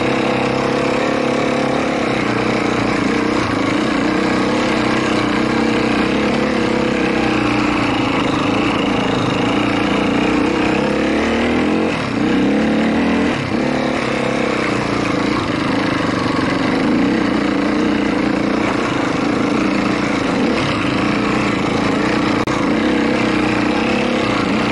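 A motorcycle engine revs loudly and unevenly close by.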